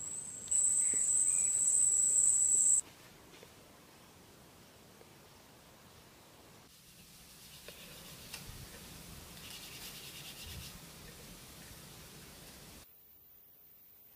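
A hand smears wet paint onto a wall.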